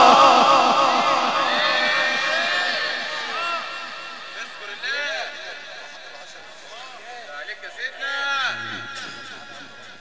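A man chants loudly into a microphone, heard through loudspeakers with echo.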